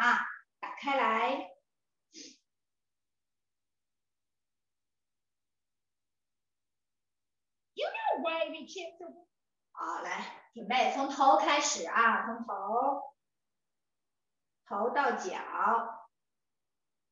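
A woman talks in short bursts over an online call.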